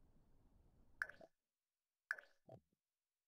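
Soft interface clicks sound.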